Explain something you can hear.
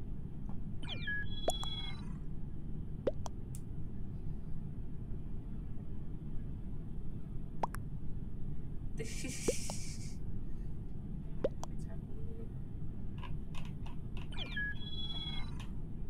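A game's chat notification chimes with short rising tones.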